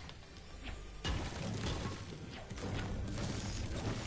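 A pickaxe strikes a wooden wall in a video game.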